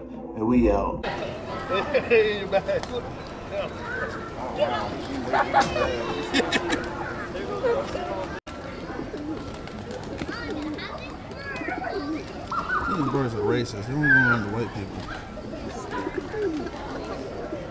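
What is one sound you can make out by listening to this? Pigeons coo in a large flock.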